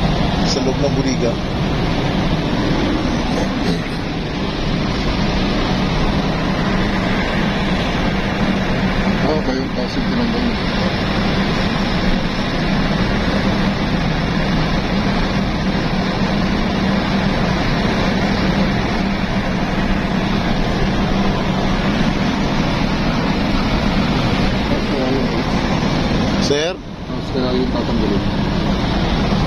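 Strong wind buffets steadily outdoors.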